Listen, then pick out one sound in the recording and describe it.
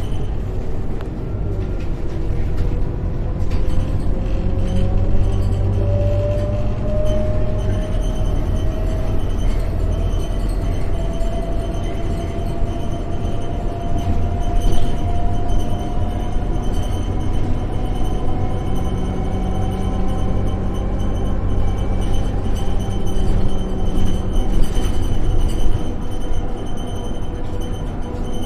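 Bus fittings rattle and clatter over bumps.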